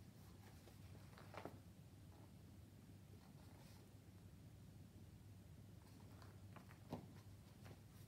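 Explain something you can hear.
Book pages rustle as a boy turns them.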